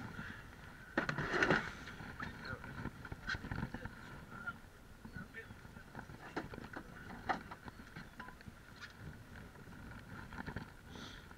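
A fishing rod clicks and knocks against the side of a boat.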